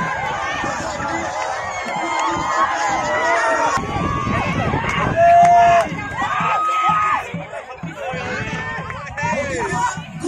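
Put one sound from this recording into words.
A crowd of young men and women shouts and cheers loudly outdoors.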